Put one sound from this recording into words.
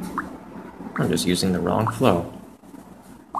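A young man speaks briefly and casually, close to a microphone.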